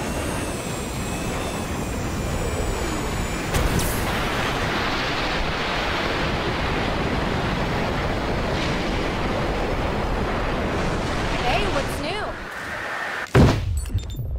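Air rushes past a flyer speeding through a canyon.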